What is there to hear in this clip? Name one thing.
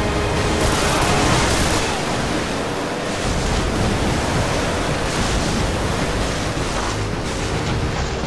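Explosions boom nearby.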